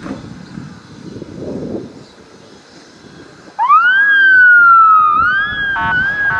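A heavy vehicle's engine rumbles as it drives past.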